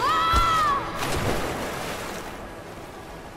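Water splashes heavily as a body lands in it.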